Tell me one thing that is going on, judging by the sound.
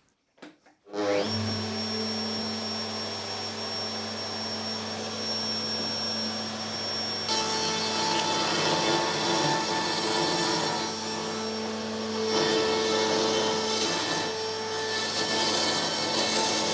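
A router motor whirs up and hums steadily.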